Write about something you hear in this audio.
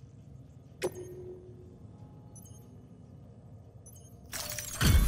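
Soft menu clicks blip.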